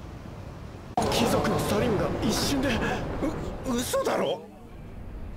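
A young man speaks with shock.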